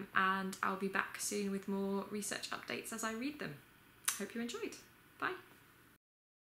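A young woman speaks calmly and closely to the listener.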